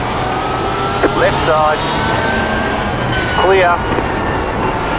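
A racing car engine briefly blips and rises in pitch during gear changes.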